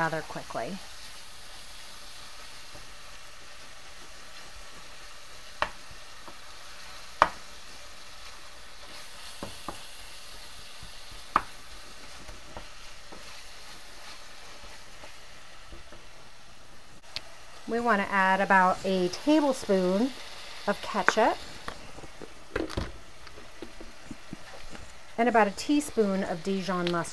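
Ground meat sizzles steadily in a hot pan.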